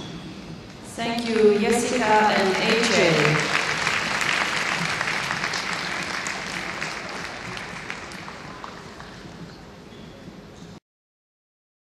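A crowd applauds in a large echoing arena.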